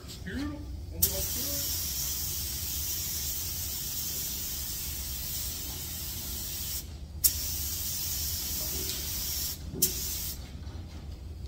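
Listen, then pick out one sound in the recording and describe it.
A spray gun hisses in loud bursts.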